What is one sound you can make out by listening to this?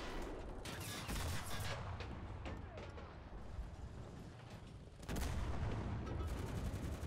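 Loud explosions boom and crackle close by.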